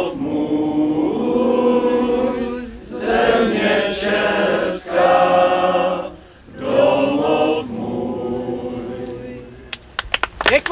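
A crowd of men and women sings together outdoors.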